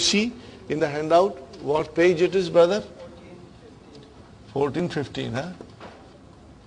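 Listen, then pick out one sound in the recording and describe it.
An elderly man speaks calmly nearby, pausing between phrases.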